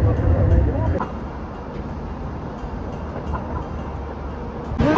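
Traffic hums along a wide road.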